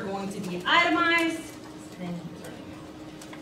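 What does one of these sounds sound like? A woman speaks to a room, her voice slightly echoing.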